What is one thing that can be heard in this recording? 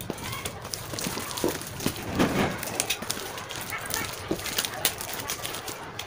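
Scissors snip through packing tape.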